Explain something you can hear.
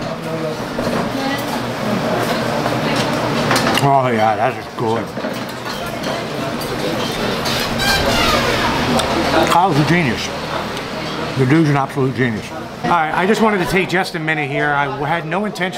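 Cutlery clinks on a plate.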